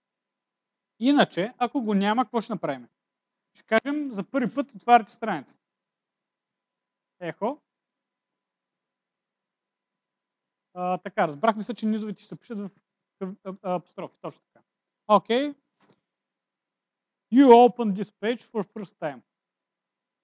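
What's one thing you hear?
A man speaks calmly, explaining in short bursts with pauses.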